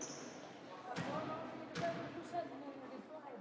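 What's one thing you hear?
A basketball bounces on a wooden floor in an echoing gym.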